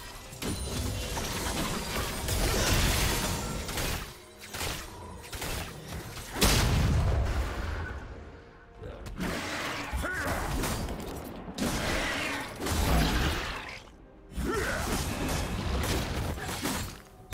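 Video game spell effects whoosh and crackle in bursts during a fight.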